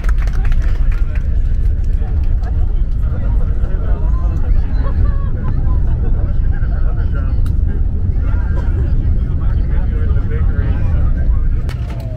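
Jet engines roar steadily as an aircraft rolls down a runway.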